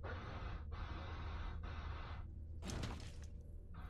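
Sword blows strike an opponent in a video game fight.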